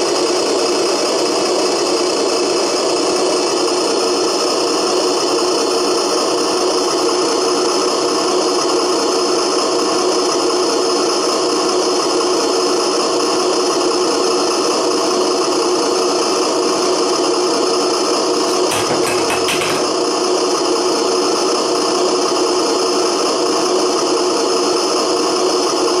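Small electric motors whir as a toy loader arm moves up and down.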